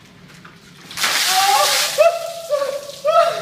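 Water splashes down from a bucket onto a man.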